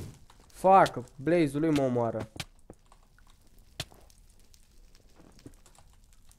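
Lava bubbles and pops nearby.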